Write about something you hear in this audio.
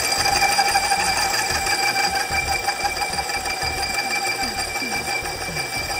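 A small lathe motor hums and whines steadily.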